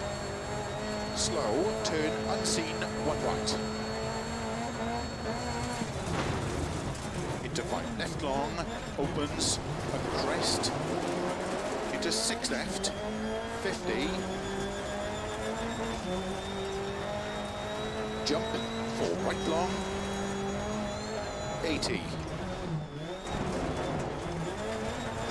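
Gravel sprays and rattles under the car's tyres.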